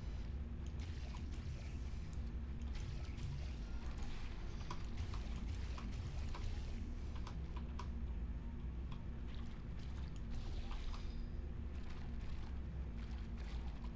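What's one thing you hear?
Gel drips and splatters.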